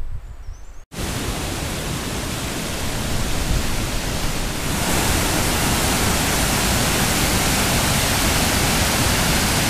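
A river rushes loudly over rapids.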